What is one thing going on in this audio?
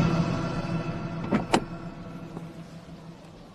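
A car engine idles and fades.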